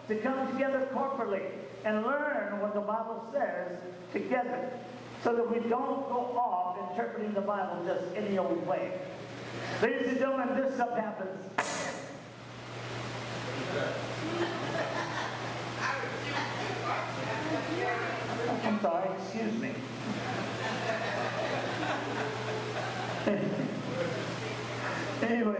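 A man preaches with animation through a microphone and loudspeakers in an echoing hall.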